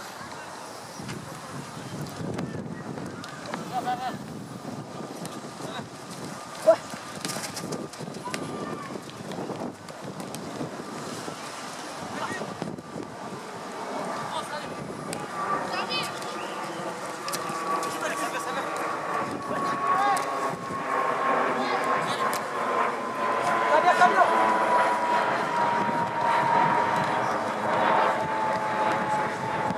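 Teenage boys shout to each other across an open field.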